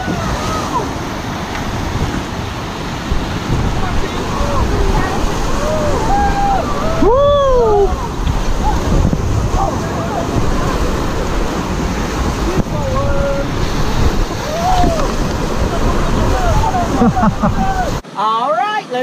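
Rapids rush and roar loudly around a raft.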